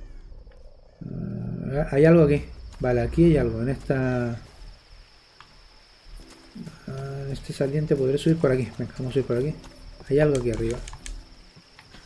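A man talks calmly and close into a microphone.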